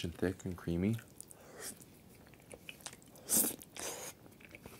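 A young man slurps noodles loudly.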